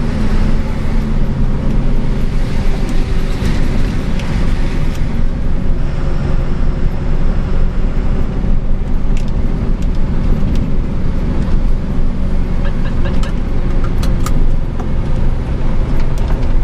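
A truck engine rumbles steadily inside the cab.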